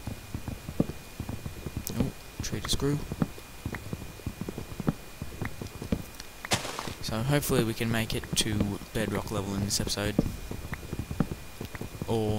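An axe chops at wood with repeated dull knocks.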